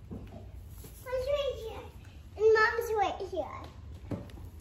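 A young boy talks excitedly and laughs close by.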